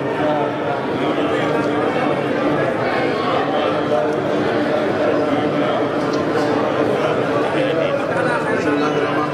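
A large crowd of men and women murmurs and chatters in a big echoing hall.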